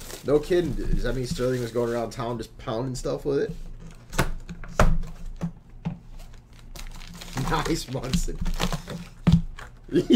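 Plastic wrappers crinkle and tear as packs are opened.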